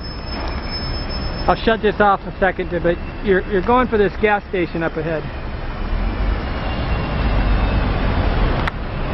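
Traffic hums along a nearby road.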